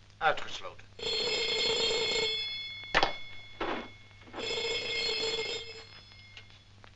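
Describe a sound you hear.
A telephone rings loudly in bursts.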